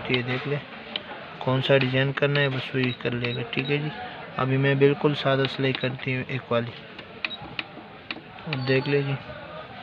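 A finger presses buttons on a sewing machine with soft clicks.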